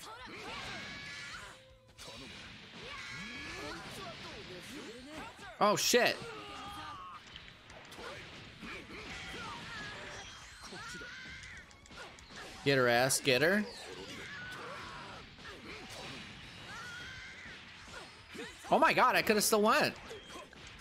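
Punches and kicks land with sharp smacking hits.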